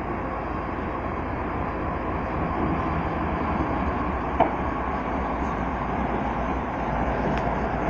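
Steel wheels clatter over the rails.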